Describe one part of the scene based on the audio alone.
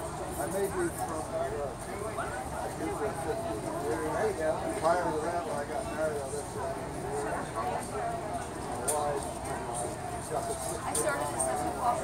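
Charcoal scratches softly across paper.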